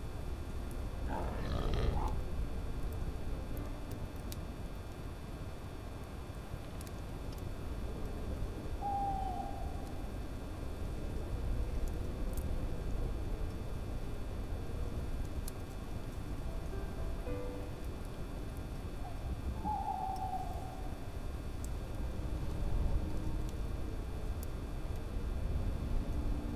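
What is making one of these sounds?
Wind howls steadily through a snowstorm.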